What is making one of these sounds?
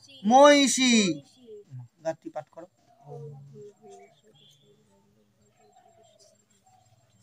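A young boy recites a chant in a low voice nearby.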